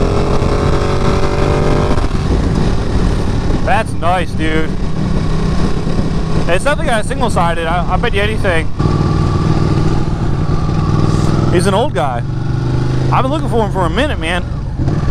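A motorcycle engine roars steadily up close.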